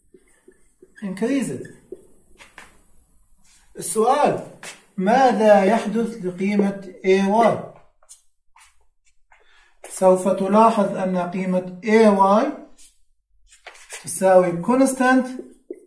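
A man talks calmly and clearly nearby.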